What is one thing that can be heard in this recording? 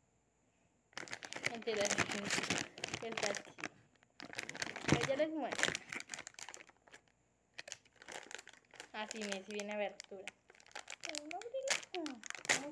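A young girl talks close to the microphone with animation.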